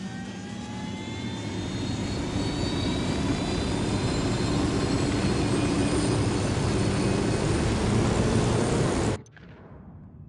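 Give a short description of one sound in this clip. A helicopter's rotor and engine roar loudly and steadily.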